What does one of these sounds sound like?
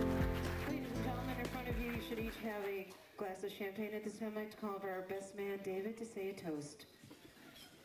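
A woman speaks through a microphone over loudspeakers.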